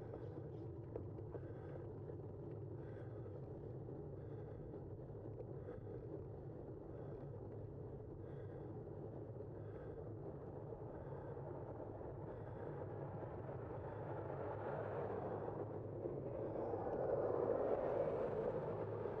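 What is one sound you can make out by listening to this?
A vehicle hums steadily with tyres rolling on a paved road.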